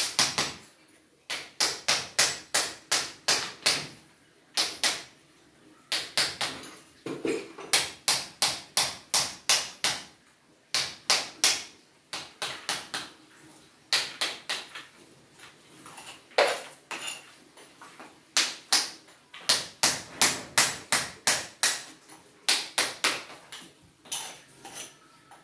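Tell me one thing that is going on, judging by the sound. A hammer strikes a chisel in quick, steady bursts of sharp metallic blows.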